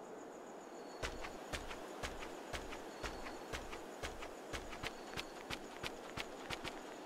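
Footsteps crunch steadily on gravel.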